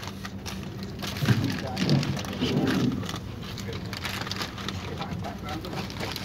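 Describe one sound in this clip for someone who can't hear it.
Plastic packets crinkle and rustle.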